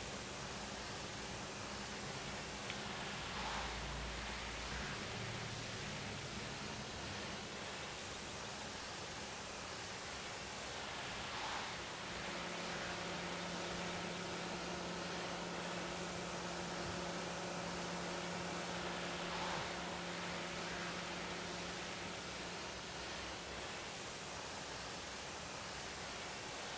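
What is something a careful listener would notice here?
A pressure washer sprays a jet of water.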